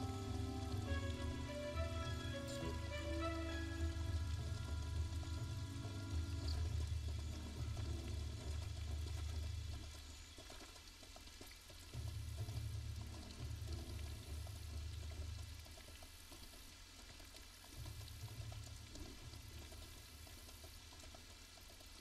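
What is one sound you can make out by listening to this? Horse hooves thud steadily on soft ground at a gallop.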